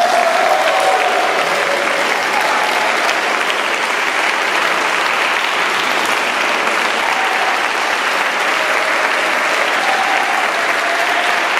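A large choir sings in a large, echoing hall.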